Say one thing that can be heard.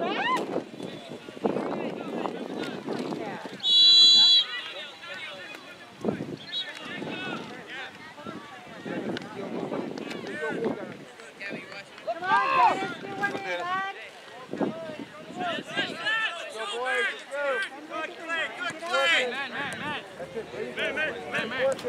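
Young men and boys shout and call out across an open field.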